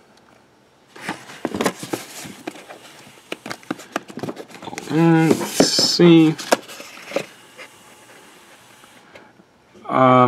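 Plastic cases knock and rattle as a hand shifts them.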